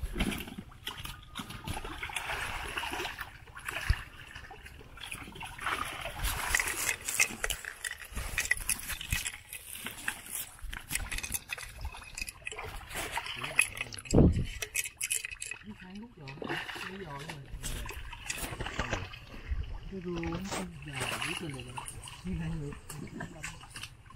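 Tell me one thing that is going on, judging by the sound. Water splashes and sloshes as several people wade through shallow mud.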